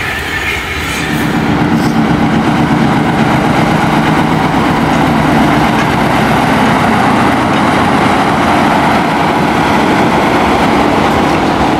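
A diesel locomotive engine rumbles steadily as it passes close by.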